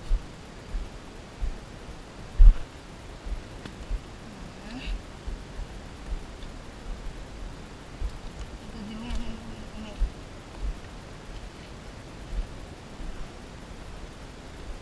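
A small stream of water trickles nearby.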